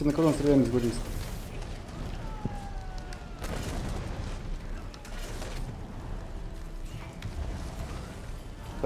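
Magic spells whoosh and crackle in a noisy battle.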